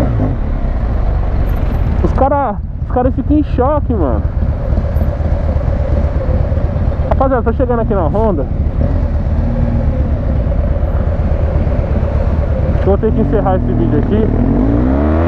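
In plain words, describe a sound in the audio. A motorcycle engine idles with a low, uneven rumble.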